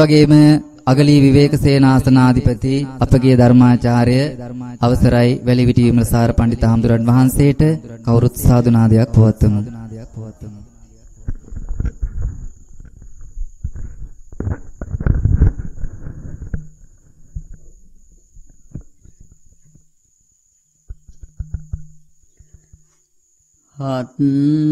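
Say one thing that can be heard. A man chants in a steady, drawn-out voice.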